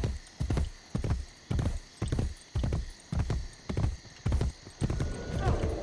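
Horse hooves gallop in a steady rhythm.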